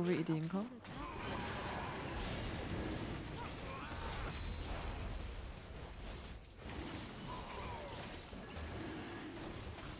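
Fantasy battle sound effects clash, crackle and roar.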